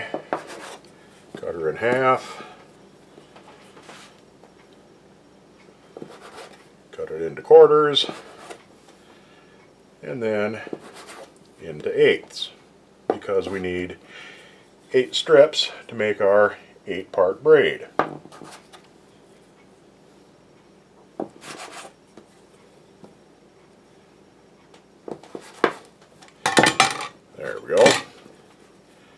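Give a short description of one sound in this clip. A metal dough scraper knocks against a stone counter as it cuts.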